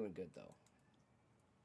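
A man speaks briefly into a close microphone, then falls quiet.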